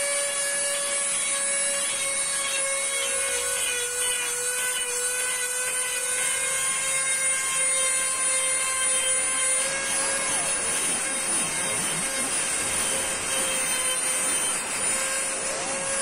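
A grinding stone rasps against metal.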